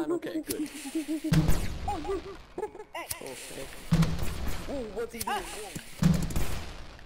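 A man talks with animation through a microphone.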